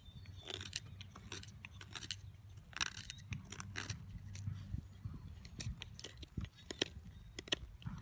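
A knife scrapes and shaves wood in short, repeated strokes.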